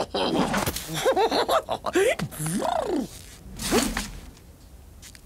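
A cartoon man's voice talks and exclaims with animation, close by.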